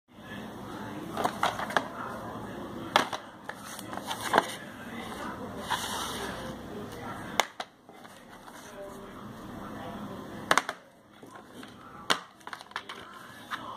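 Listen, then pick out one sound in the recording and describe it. Plastic disc cases click and rattle as they are handled.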